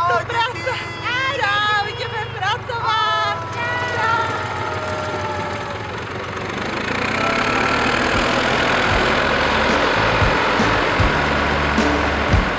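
A small loader's engine rumbles steadily.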